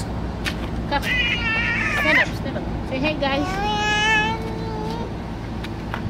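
A young girl laughs and squeals with delight close by.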